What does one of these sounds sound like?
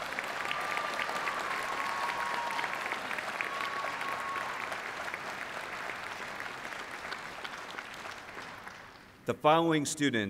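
An audience applauds in a large hall, then fades away.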